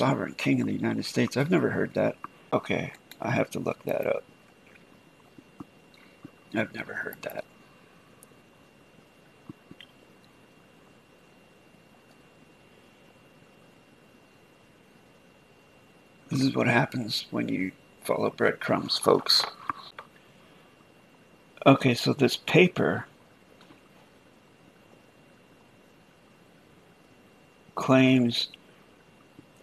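A middle-aged man talks calmly into a close microphone, in short bursts with long pauses.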